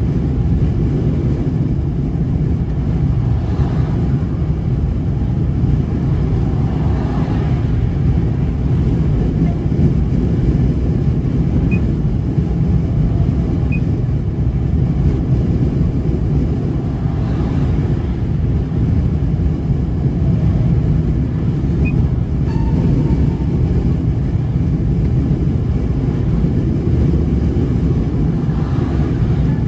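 A vehicle's engine and tyres rumble steadily at highway speed.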